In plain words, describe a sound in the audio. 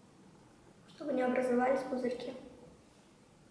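A young girl speaks briefly nearby.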